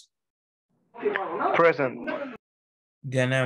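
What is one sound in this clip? A man speaks over an online call.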